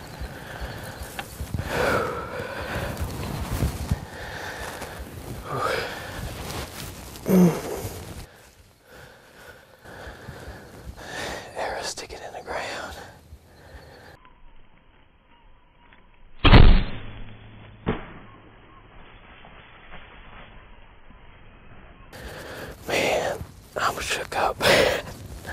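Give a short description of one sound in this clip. A man speaks quietly and close by.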